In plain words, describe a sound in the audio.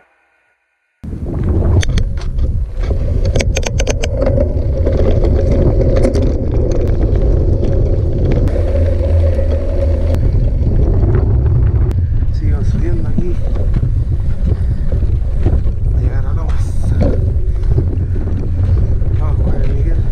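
Wind rushes loudly past while riding.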